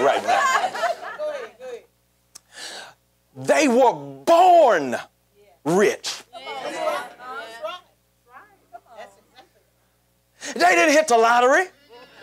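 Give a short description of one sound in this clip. A man preaches with animation into a microphone, pausing between phrases.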